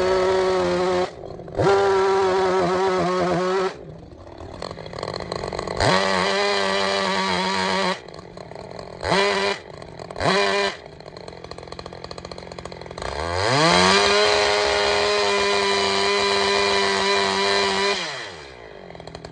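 A chainsaw roars in loud bursts as it cuts into wood.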